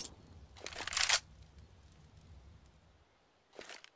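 A rifle is drawn with a metallic clack.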